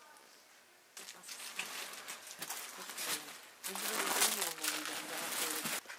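Plastic and cloth bags rustle as they are packed by hand.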